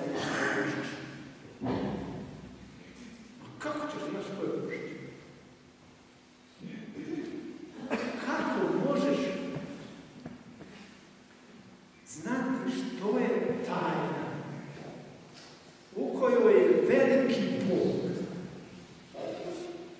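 An elderly man speaks slowly and solemnly through a microphone, his voice echoing in a large hall.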